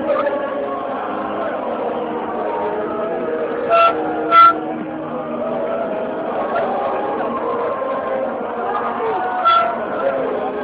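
A large crowd sings and chants loudly outdoors.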